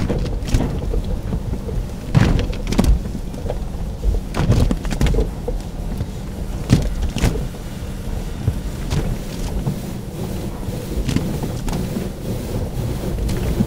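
Car wash brushes thump and swish against the car.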